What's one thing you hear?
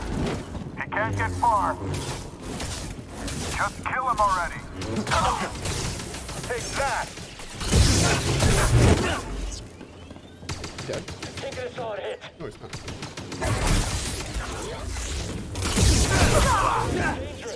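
Lightsabers hum and clash with sharp electric crackles.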